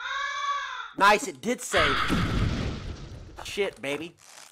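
A young man speaks with animation into a microphone, close by.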